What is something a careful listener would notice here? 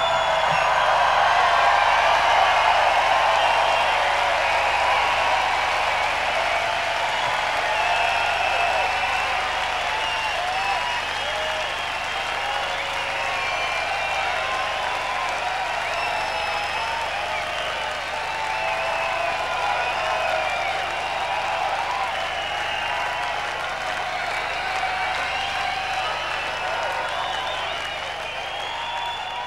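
A huge outdoor crowd cheers, whistles and shouts steadily.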